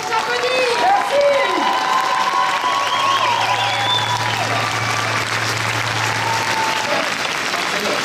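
Several men and women on stage cheer and call out loudly.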